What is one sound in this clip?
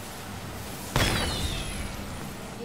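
A loud explosion bursts with a crackle of fireworks.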